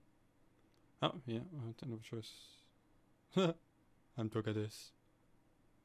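A young man speaks briefly, close to a microphone.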